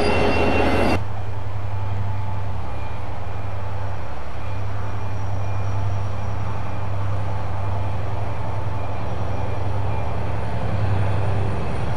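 A diesel locomotive engine rumbles low and steady as the train slowly approaches.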